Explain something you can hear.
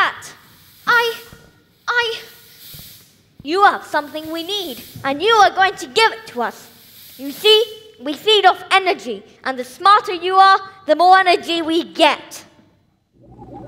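A child speaks with animation on a stage, heard from across a hall.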